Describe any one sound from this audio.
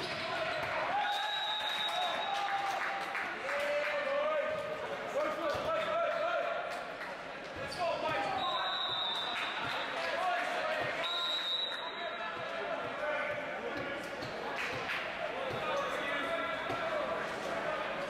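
A ball is struck with sharp slaps.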